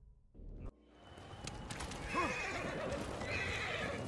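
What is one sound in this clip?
A horse's hooves thud as it gallops over grass.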